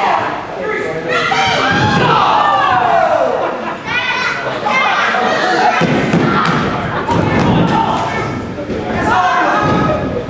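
Bodies slam onto a wrestling ring's mat with heavy thuds.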